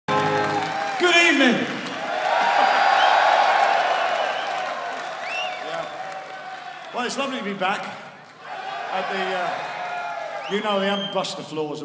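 An elderly man sings into a microphone over loud amplified sound in a large hall.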